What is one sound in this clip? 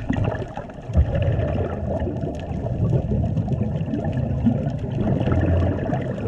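Air bubbles from scuba breathing gurgle and rumble close by underwater.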